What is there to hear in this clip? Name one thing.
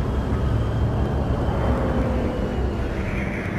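A speeder's engine winds down as it settles.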